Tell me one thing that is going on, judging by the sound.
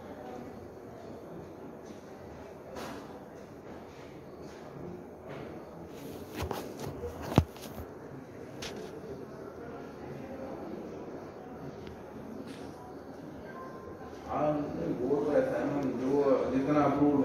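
A man talks calmly on a phone nearby.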